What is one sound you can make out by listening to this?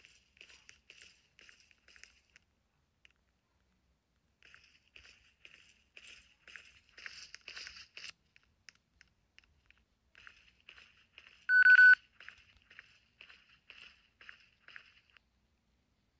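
Quick footsteps tap on a hard tiled floor.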